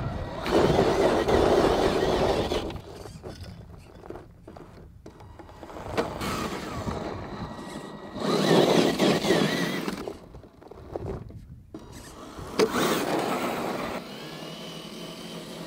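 Tyres crunch and scrape over loose dirt and stones.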